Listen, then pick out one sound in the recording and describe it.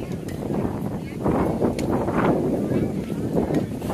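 A metal bat strikes a baseball with a sharp ping.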